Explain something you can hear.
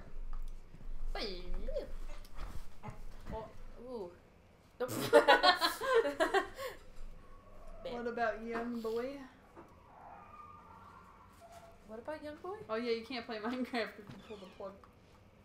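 Young women talk and laugh close to a microphone.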